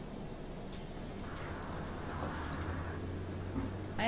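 Bus doors hiss open with a burst of air.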